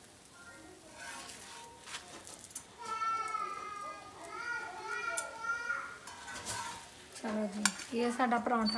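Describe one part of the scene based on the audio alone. Metal tongs clink and scrape against an iron griddle.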